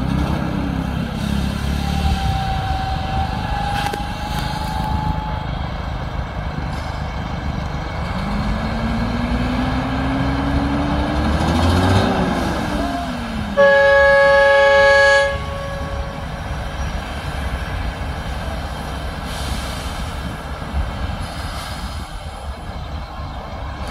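A heavy truck engine rumbles and strains as it climbs slowly.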